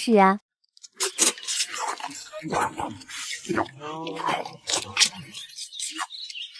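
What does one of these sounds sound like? People slurp and chew food noisily.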